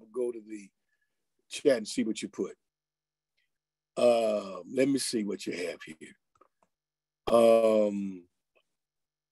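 A middle-aged man speaks with animation close to a microphone, with pauses.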